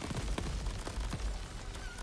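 Magic blasts crackle and burst.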